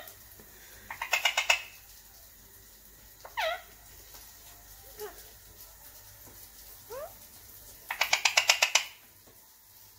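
A parrot chatters in quick, rapid bursts.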